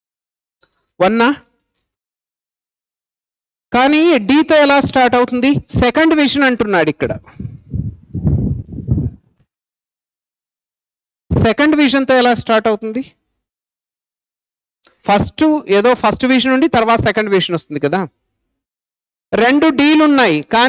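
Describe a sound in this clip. A man speaks calmly and clearly into a close microphone, explaining in pauses.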